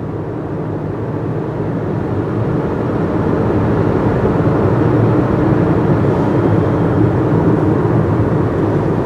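A car drives on a paved road, heard from inside.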